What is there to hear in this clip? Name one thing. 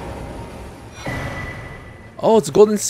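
A soft magical chime rings out.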